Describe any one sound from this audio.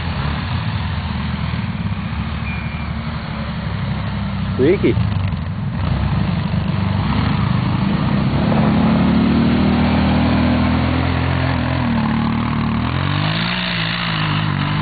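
An all-terrain vehicle engine rumbles and revs nearby.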